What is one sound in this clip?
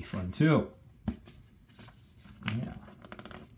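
A book page turns with a soft rustle.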